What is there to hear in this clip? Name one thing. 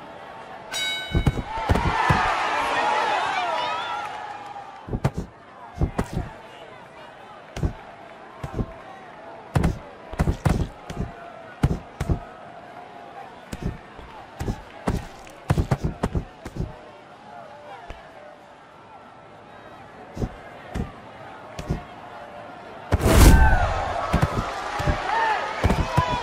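Boxing gloves thud against bodies in quick punches.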